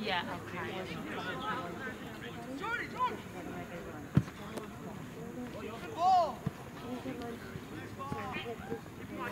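Men and women on a sideline shout and call out encouragement outdoors.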